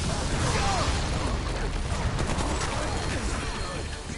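Rocks burst and crash apart.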